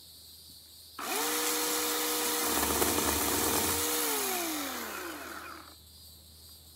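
A chainsaw roars as it cuts wood, then winds down.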